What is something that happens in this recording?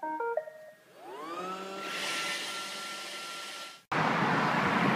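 A robot vacuum's motor whirs and rises in pitch.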